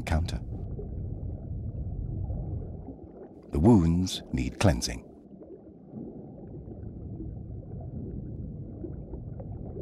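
Water rumbles and swirls in a low, steady murmur underwater.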